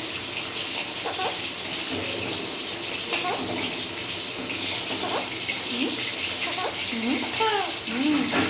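A parrot squawks and chirps close by.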